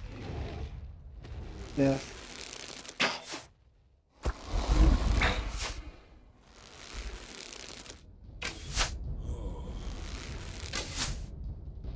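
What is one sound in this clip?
A bowstring twangs as arrows are loosed.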